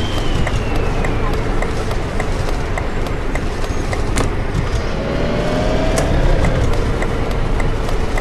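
A turn signal ticks in an even rhythm.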